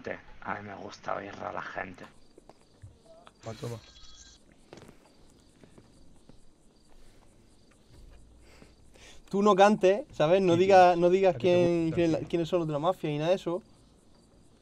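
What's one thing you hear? A young man talks close to a headset microphone.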